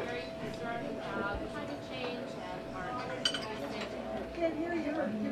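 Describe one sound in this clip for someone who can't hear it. A crowd of men and women chatters over one another in a busy room.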